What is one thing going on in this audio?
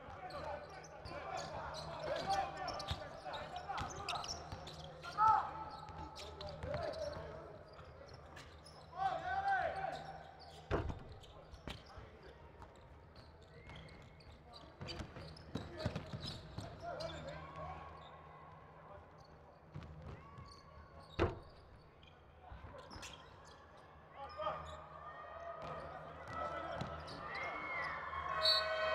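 Sneakers squeak sharply on a hardwood court.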